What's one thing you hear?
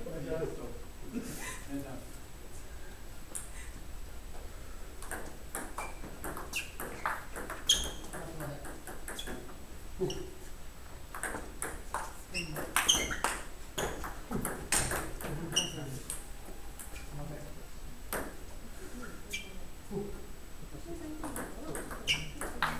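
A ping-pong ball clicks back and forth on paddles and a table in a quick rally.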